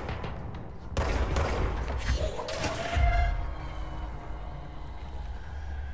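A heavy metal container crashes and clatters.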